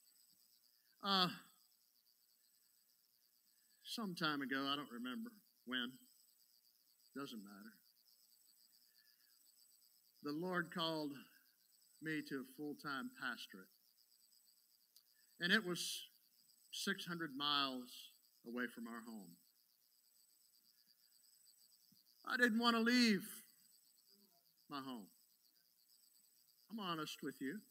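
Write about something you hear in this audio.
An older man speaks calmly into a microphone, in short phrases with pauses.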